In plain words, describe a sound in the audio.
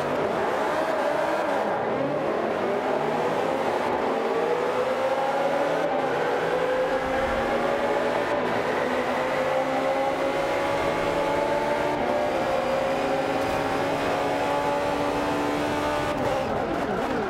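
A racing car engine roars and climbs in pitch as it speeds up through the gears.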